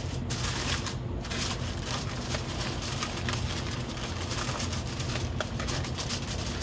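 Aluminium foil crinkles as hands fold it around a tray.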